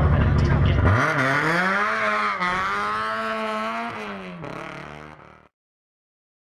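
A race car engine revs and accelerates away, fading.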